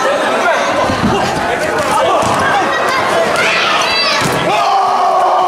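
Bodies thud heavily onto a mat.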